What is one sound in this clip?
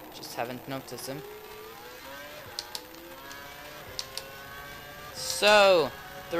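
A racing car engine whines and rises in pitch as the car speeds up.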